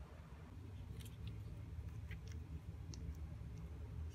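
Hands handle a small plastic tube with soft clicks and rustles.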